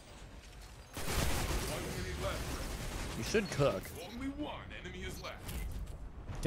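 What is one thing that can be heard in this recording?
Gunfire and explosions crack and boom from a video game.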